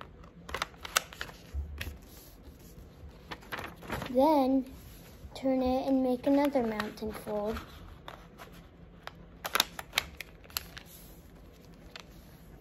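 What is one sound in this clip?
Paper rustles and creases as it is folded by hand.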